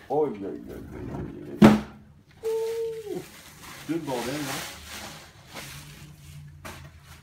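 Bubble wrap crinkles and rustles.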